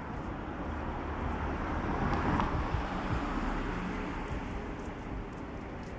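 A car drives slowly past nearby.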